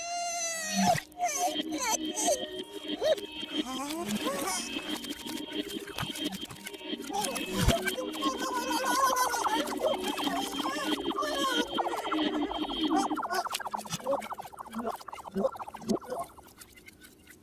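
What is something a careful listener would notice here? A small cartoon creature squeals and grunts as it struggles.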